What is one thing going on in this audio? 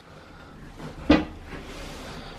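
A man thumps down onto a seat.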